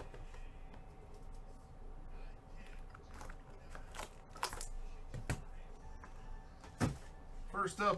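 Gloved hands rustle and tap a cardboard box.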